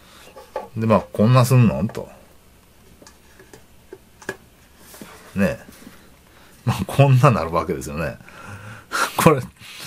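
A metal lid clinks against a glass jar.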